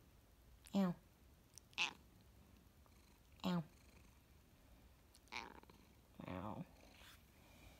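A cat meows several times up close.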